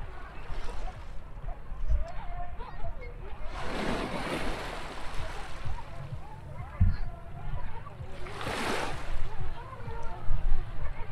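Wind rumbles outdoors over open water.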